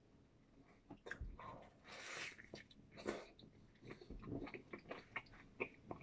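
A young man chews food with his mouth close to the microphone.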